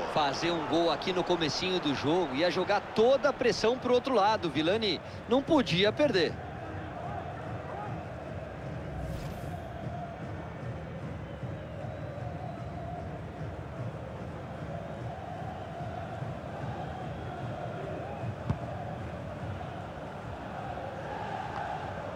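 A large crowd cheers and murmurs in a stadium.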